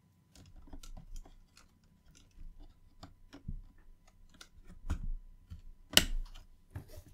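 Plastic connectors click as they are plugged in.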